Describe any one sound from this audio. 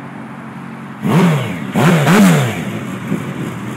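A motorcycle engine revs up sharply several times.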